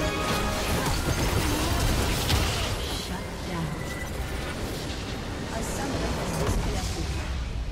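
Game spell effects and blasts crash and clash in a busy fight.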